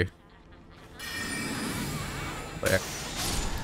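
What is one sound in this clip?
A magic spell hums and shimmers as it is cast.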